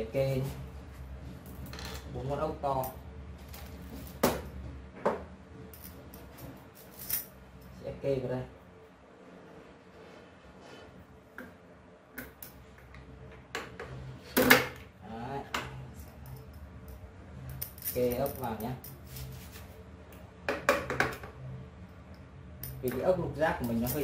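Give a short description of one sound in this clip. Metal parts click and clank close by.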